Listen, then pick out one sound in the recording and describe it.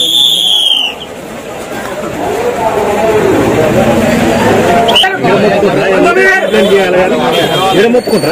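A crowd of men chatters and calls out loudly nearby.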